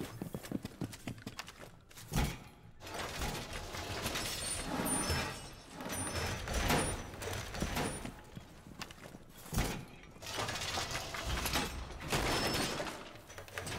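Metal panels clank and scrape as walls are reinforced.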